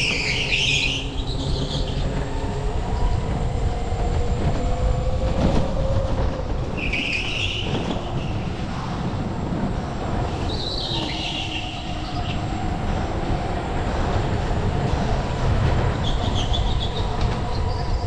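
Tyres squeal briefly in the corners, again and again.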